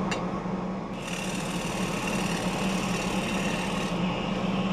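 A gouge cuts wood on a spinning lathe.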